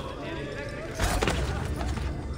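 A body lands with a heavy thud on stone.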